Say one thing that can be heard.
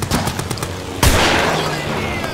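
A revolver fires a single loud shot.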